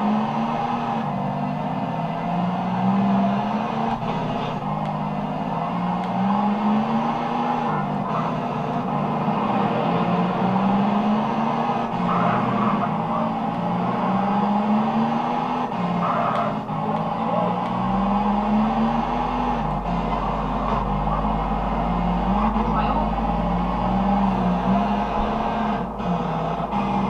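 A car engine from a video game revs up and down over and over through a loudspeaker.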